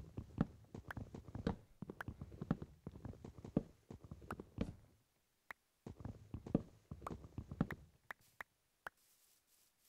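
An axe chops repeatedly at wood with quick knocks.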